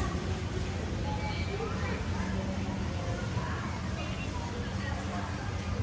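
Children chatter softly a short way off.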